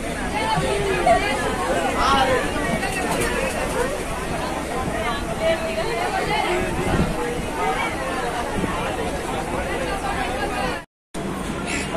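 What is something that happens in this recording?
A crowd of passengers chatter close by.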